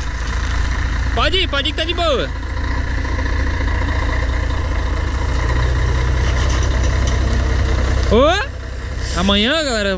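A large diesel truck engine idles with a deep, steady rumble.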